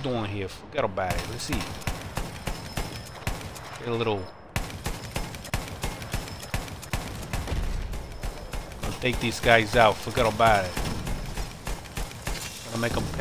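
A heavy machine gun fires rapid bursts.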